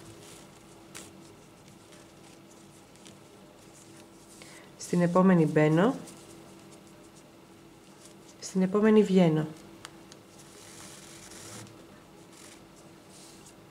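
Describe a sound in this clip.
A cord rustles softly as it is pulled through knitted fabric.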